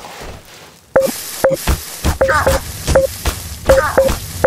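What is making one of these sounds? Heavy blows thud and squelch again and again.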